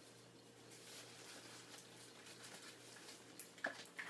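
A bag rustles as a hand rummages in it.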